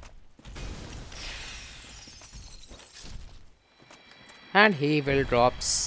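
A sword strikes a crystal creature with a bright, ringing crash.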